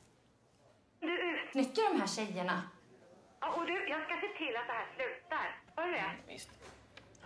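A middle-aged woman speaks quietly.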